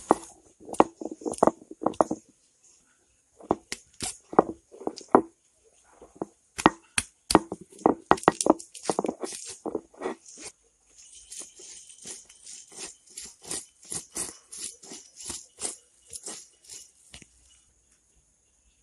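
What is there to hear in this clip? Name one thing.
A heavy stone roller crushes and grinds garlic with rhythmic scraping thuds.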